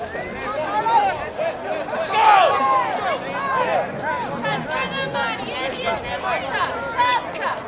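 A crowd of young men shouts and cheers nearby, outdoors.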